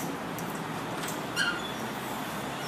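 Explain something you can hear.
A door clunks as it is pushed open.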